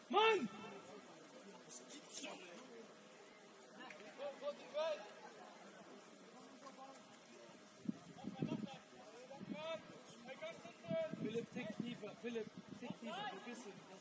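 Young men shout to each other outdoors, some way off.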